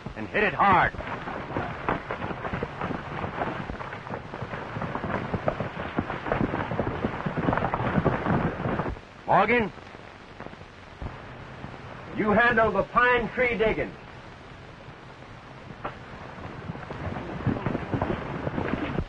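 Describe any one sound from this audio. A crowd of men murmurs and calls out in the background.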